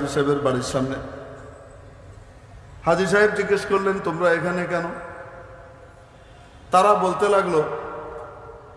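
A man chants melodically into a microphone, heard through loudspeakers with an echo.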